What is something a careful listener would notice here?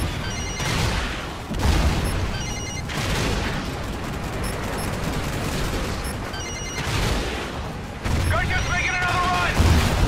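Cannon fire thumps in rapid bursts.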